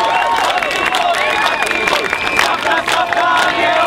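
A large crowd sings and chants outdoors.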